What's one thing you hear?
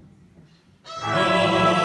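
A string orchestra begins to play.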